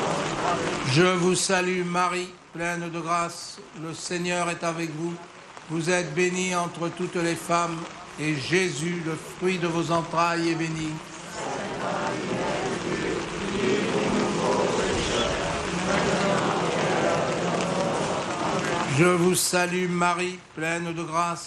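A single voice sings a chant through a loudspeaker.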